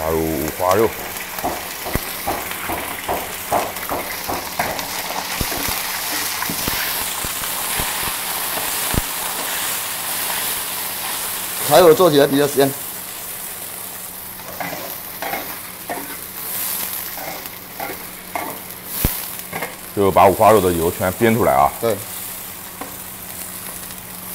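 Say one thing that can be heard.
A metal spatula scrapes and clatters against a wok.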